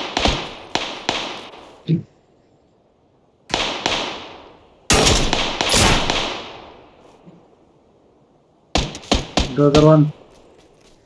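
Rifle shots crack loudly, with echoes trailing off.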